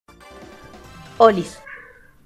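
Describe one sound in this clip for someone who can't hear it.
Cheerful video game menu music plays.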